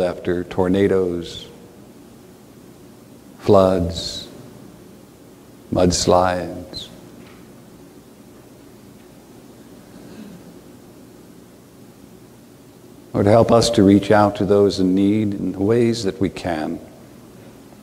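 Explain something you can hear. An older man speaks slowly and calmly in a room with a slight echo, pausing between phrases.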